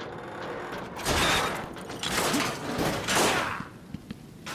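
A metal grate rattles and is wrenched open with a loud scrape.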